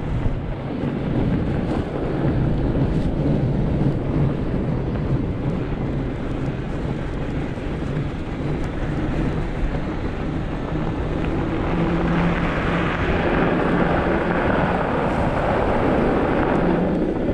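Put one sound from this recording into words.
Bicycle tyres crunch over packed snow.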